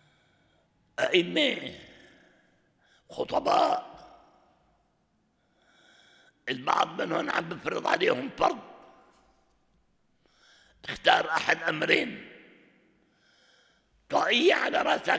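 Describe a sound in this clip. An elderly man speaks with animation into a microphone, in bursts with pauses, in a reverberant hall.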